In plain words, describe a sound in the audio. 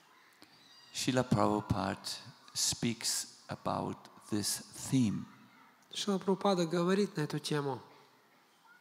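An elderly man speaks calmly into a microphone over a loudspeaker.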